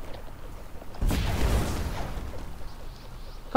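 A video game blast whooshes and booms.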